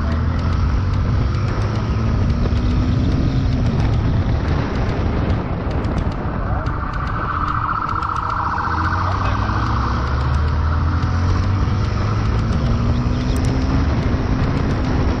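A motorcycle engine runs at speed.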